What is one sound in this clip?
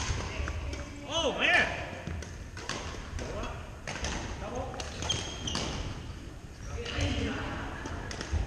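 Young men call out to each other from across the court.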